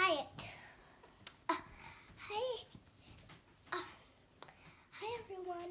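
A young girl sings with animation close by.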